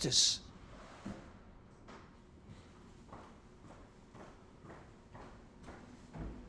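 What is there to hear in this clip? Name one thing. Footsteps tread softly across a floor.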